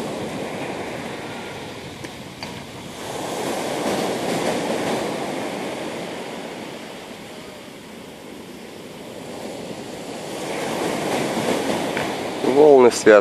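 Waves break and wash over a pebble beach in swelling surges.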